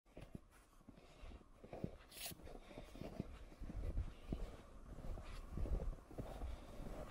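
Boots crunch steadily through snow.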